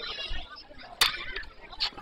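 A metal bat strikes a ball with a sharp ping.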